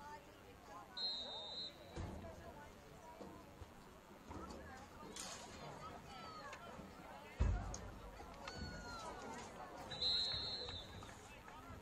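A referee blows a sharp whistle twice.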